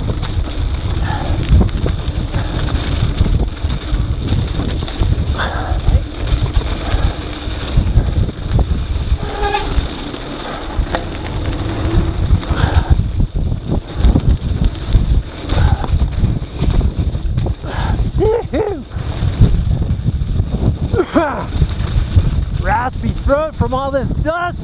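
Bicycle tyres crunch and roll over a dirt trail.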